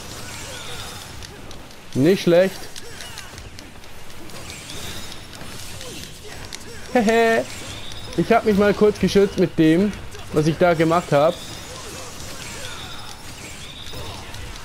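Swords slash and clang in a fast fight.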